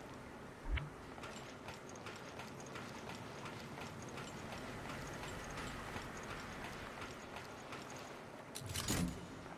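Footsteps walk on a metal floor.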